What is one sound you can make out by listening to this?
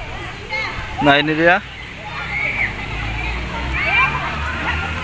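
Children shout and call out playfully nearby.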